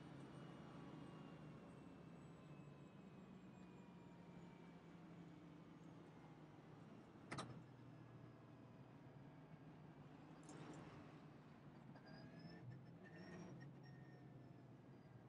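A race car engine drones steadily at low speed.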